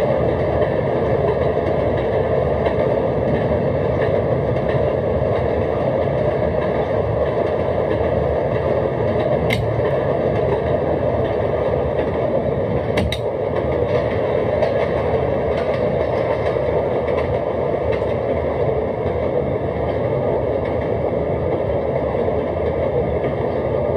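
A train rumbles steadily along elevated tracks.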